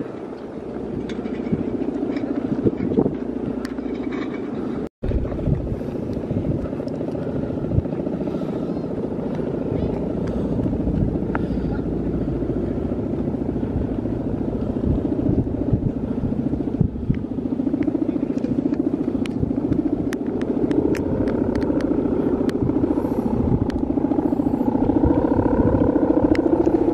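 Wind blows strongly outdoors, rumbling and buffeting.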